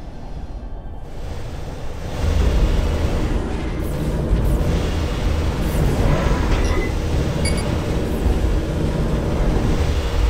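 Laser weapons zap repeatedly.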